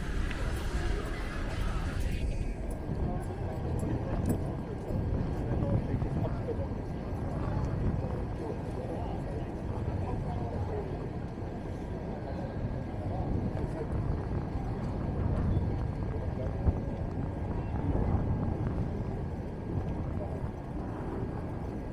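Footsteps tap on pavement nearby.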